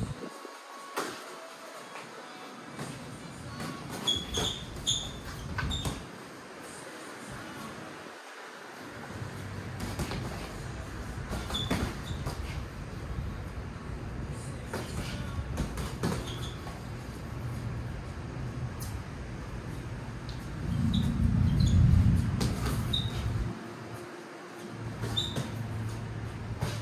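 Boxing gloves thud against each other.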